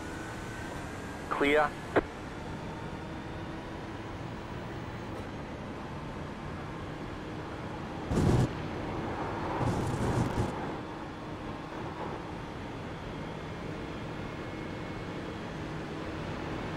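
A racing car engine drones steadily as the car speeds along a track.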